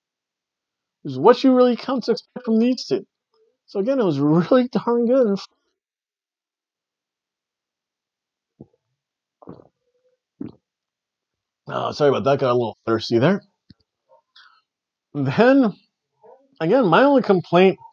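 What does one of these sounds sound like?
A middle-aged man talks with animation, close to the microphone.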